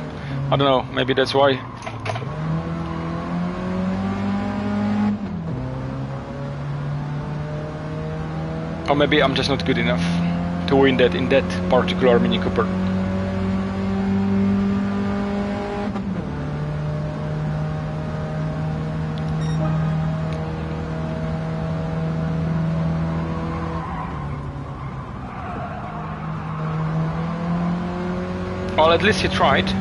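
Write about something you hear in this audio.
Tyres squeal in short bursts through corners.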